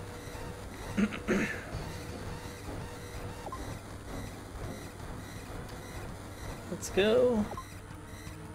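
An alarm sounds in short bursts.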